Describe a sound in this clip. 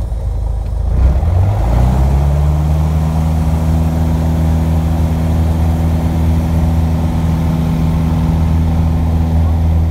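A small propeller engine drones loudly and rises in pitch as it revs up.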